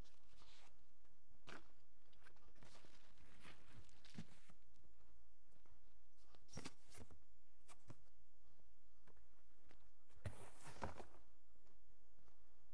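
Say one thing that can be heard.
A cloth rubs and squeaks against a car's paint in short strokes.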